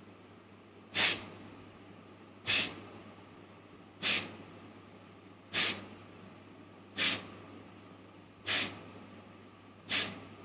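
A woman breathes out sharply through her nose, in regular forceful bursts, close by.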